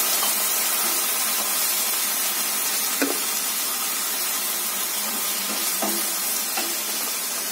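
A spatula scrapes and knocks against a pan.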